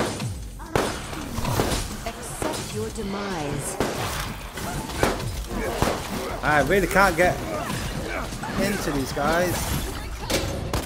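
Gunshots and game effects crackle and thump.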